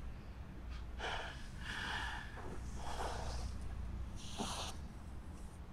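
Clothes rustle and crumple close by.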